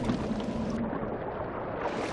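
Water splashes as a swimmer moves through it.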